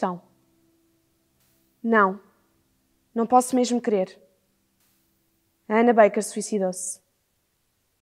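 A young woman speaks softly and slowly, close by, with long pauses.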